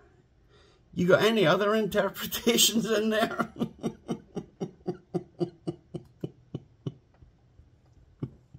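An older man laughs loudly in bursts.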